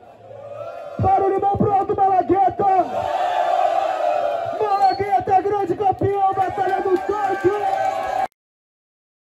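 A young man raps loudly into a microphone over a loudspeaker.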